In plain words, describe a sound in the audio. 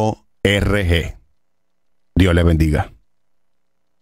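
A middle-aged man speaks into a close microphone in short bursts.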